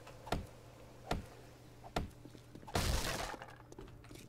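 An axe strikes a hard object with sharp knocks.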